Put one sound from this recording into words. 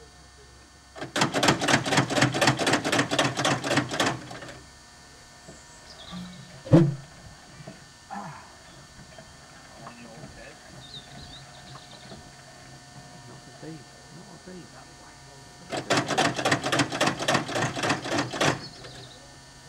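A tractor engine is cranked and turns over with a rapid chugging, then stops.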